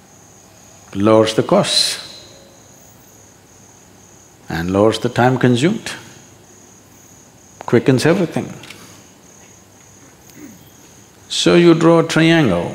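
An elderly man speaks calmly and slowly in short phrases, close to a microphone.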